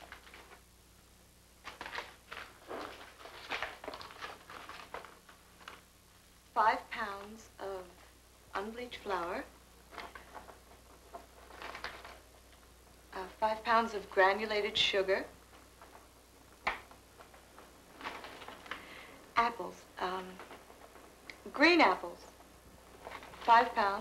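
A paper grocery bag rustles.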